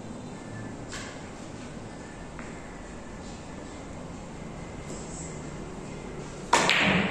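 Carom billiard balls click against each other.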